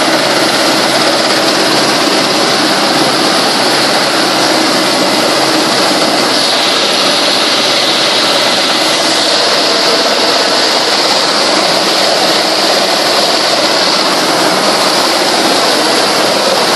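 An aircraft engine roars loudly and steadily from inside the cabin.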